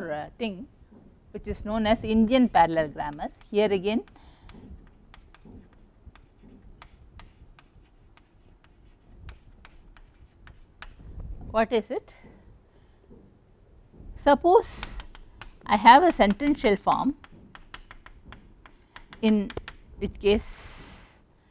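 A woman speaks calmly, as if lecturing, through a microphone.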